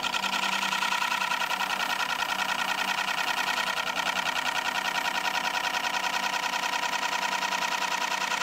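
A chisel scrapes against spinning wood with a rapid, rattling chatter.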